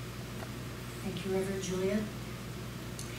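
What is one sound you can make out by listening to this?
An elderly woman speaks into a microphone over a loudspeaker, in a room with some echo.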